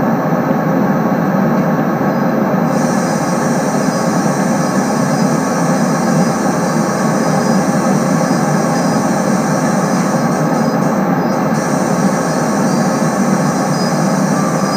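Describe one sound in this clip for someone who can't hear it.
A train engine rumbles steadily as the train rolls along the tracks.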